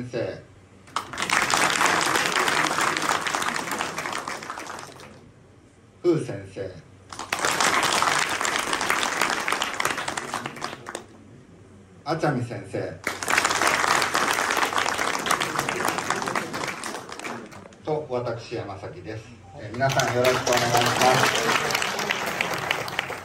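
An audience claps loudly in a large hall, in repeated bursts.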